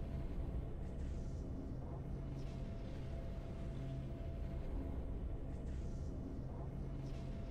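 Triumphant orchestral game music plays steadily.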